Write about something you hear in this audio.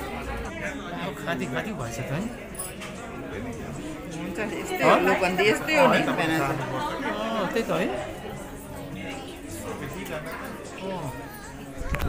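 Several young women chatter and laugh nearby.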